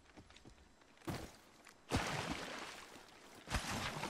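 Water splashes as feet wade through a stream.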